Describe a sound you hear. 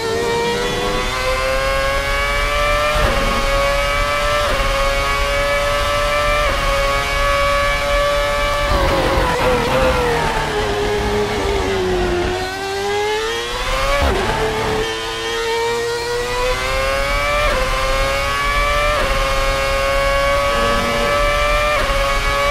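A racing car engine screams at high revs, shifting up through the gears.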